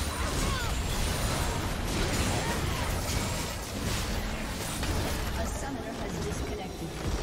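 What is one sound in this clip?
Spell effects crackle and whoosh in a game battle.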